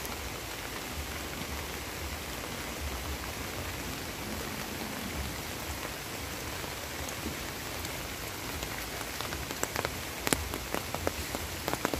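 Rain patters steadily onto a flowing stream outdoors.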